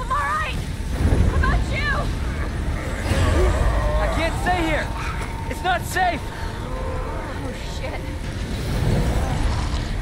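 A young woman shouts with alarm.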